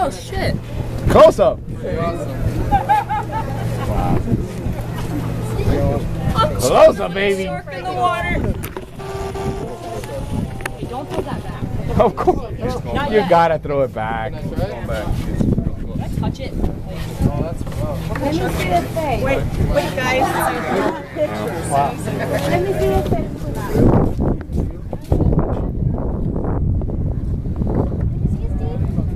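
A crowd of men, women and children talks and exclaims nearby, outdoors.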